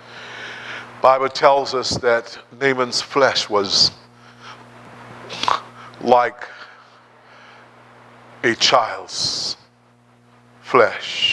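A man preaches with animation into a microphone, pausing between phrases.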